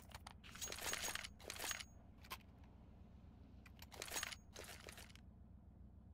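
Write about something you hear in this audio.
Footsteps patter quickly on hard stone.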